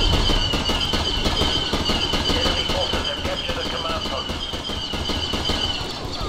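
A laser rifle fires sharp shots.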